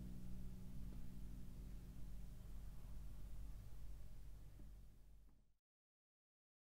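A lute is plucked, playing a slow tune that fades out.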